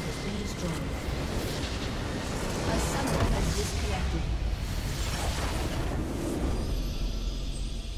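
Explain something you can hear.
A large structure explodes with a deep rumbling blast.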